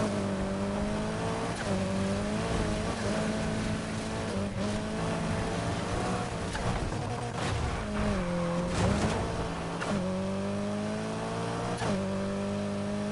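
A car engine roars loudly, its pitch rising and falling as it shifts gears.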